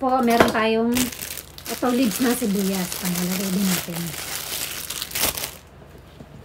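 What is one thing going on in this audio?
A plastic bag crinkles and rustles loudly.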